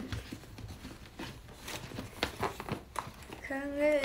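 A plastic wrapper crinkles as hands handle it.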